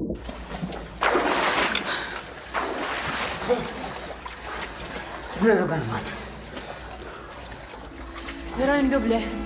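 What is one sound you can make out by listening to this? Water splashes and laps close by.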